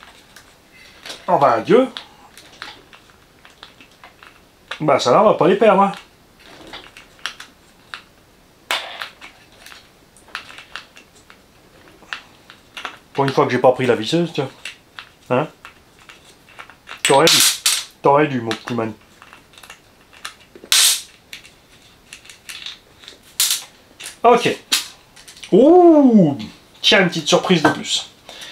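A man talks calmly and close by, in short bursts with pauses.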